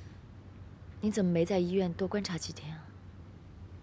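A young woman speaks calmly and gently, close by.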